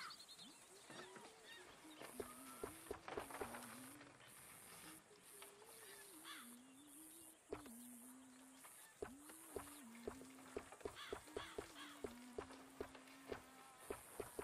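Horse hooves clop steadily on a dirt track.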